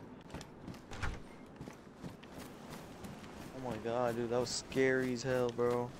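Footsteps crunch over grass and gravel.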